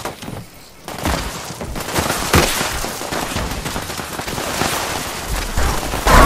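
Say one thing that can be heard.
Footsteps thud on a wooden floor and then rustle through grass.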